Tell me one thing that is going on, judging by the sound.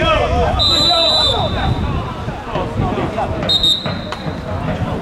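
A referee's whistle blows sharply twice.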